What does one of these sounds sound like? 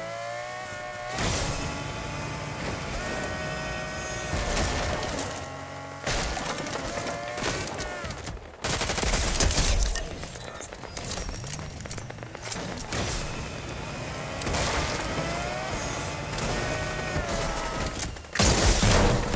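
A car engine revs and hums, rising and falling in pitch.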